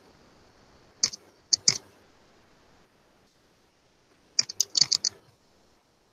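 Keys click on a keyboard in short bursts.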